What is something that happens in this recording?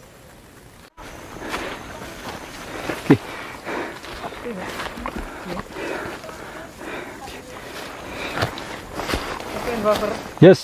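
Footsteps crunch and rustle through leafy undergrowth.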